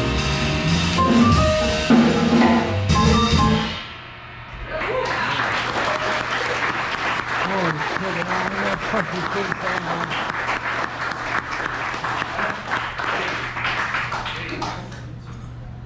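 A drummer plays a kit with ringing cymbals.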